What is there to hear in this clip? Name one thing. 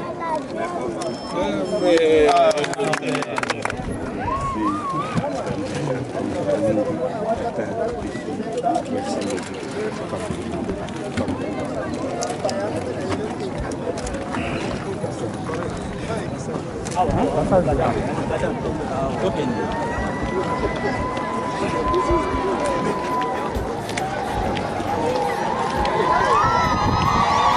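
A crowd of people chatter and cheer outdoors.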